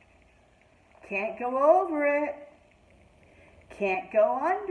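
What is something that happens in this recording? A middle-aged woman reads aloud expressively, close by.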